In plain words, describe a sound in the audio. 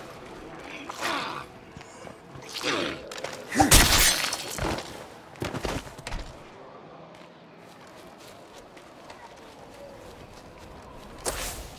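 Footsteps thud quickly on dirt and gravel.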